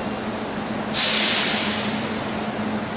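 Air hisses loudly from a locomotive's brakes.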